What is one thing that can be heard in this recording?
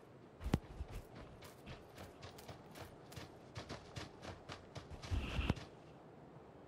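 Footsteps crunch quickly over rough ground.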